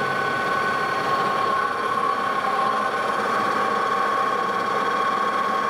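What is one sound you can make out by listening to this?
A metal lathe turns with a steady high whine.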